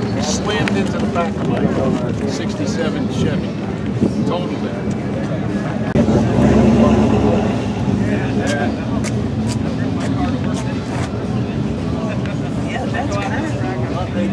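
A crowd of people chatter outdoors in the background.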